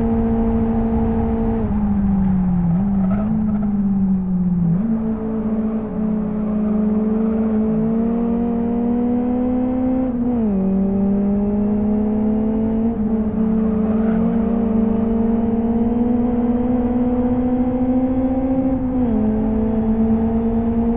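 A car engine revs high, dropping in pitch at each gear change and climbing again.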